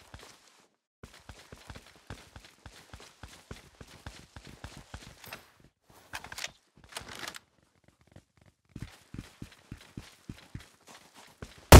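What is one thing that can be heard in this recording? Boots thud on paving in running footsteps.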